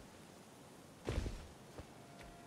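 A heavy thud sounds as someone lands from a jump.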